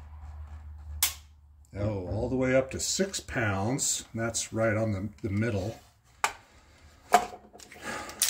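Metal parts of a handgun click sharply as they are handled.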